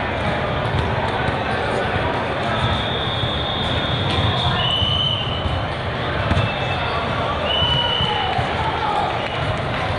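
A volleyball is struck with a thud.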